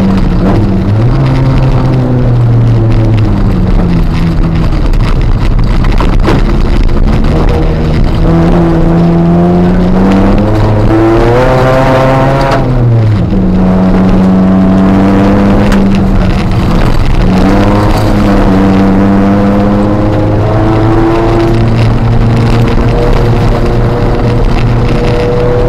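A car engine roars loudly, revving up and down through the gears.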